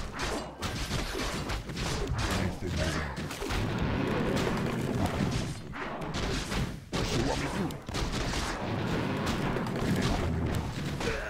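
Weapons clash and strike in a busy fight.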